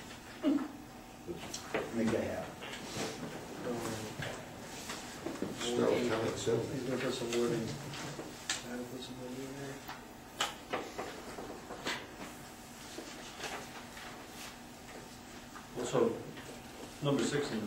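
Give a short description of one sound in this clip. A man speaks calmly at a distance in a room with a slight echo.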